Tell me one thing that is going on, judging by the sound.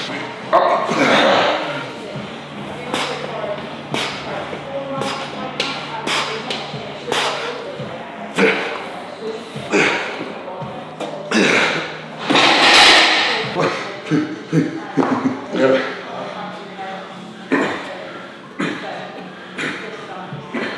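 A man strains and grunts loudly.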